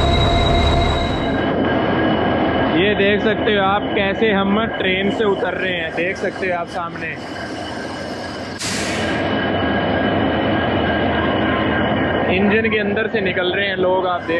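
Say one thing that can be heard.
A diesel locomotive engine hums steadily nearby.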